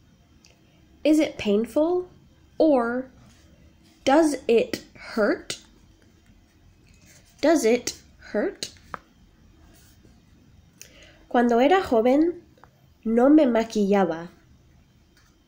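A young woman speaks close to the microphone in short, calm phrases with pauses.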